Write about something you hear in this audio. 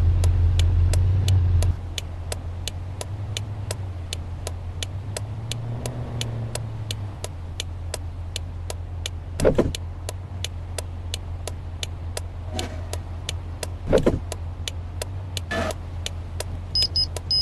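A turn signal ticks rapidly and evenly.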